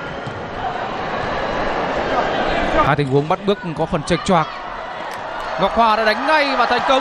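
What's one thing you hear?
A large crowd roars and cheers in a big echoing hall.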